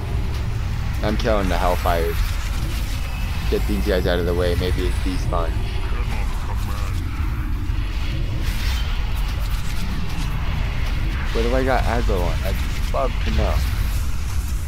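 A young man talks into a microphone in short bursts.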